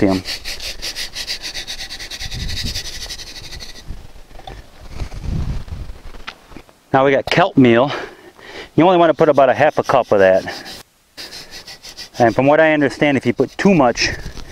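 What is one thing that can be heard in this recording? A trowel scrapes into dry dirt.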